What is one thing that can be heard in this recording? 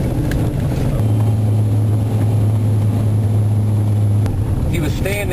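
A vehicle engine hums steadily from inside a cab.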